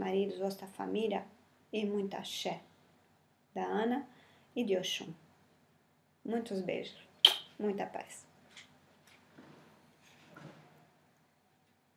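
A woman speaks calmly and close up, in short phrases with pauses.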